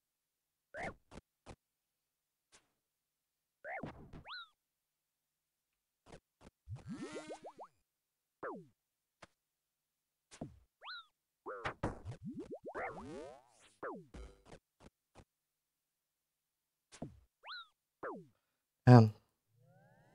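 Short, sharp game sound effects chirp and whoosh on and off.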